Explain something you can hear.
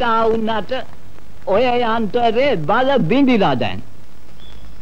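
An elderly man speaks loudly and angrily, close by.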